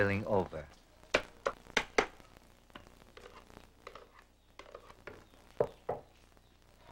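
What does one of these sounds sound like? A wooden paddle knocks and scrapes against a pan.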